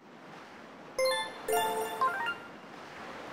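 A bright chiming jingle plays.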